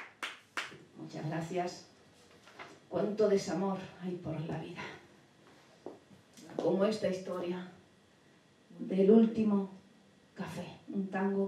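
A woman sings into a microphone, in slow held phrases with pauses between them.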